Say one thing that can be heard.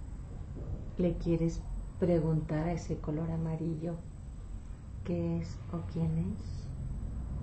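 A woman speaks calmly and slowly nearby.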